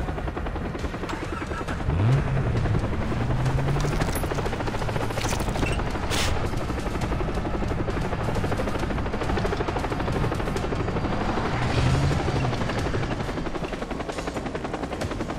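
A vehicle engine rumbles and revs as it drives over rough ground.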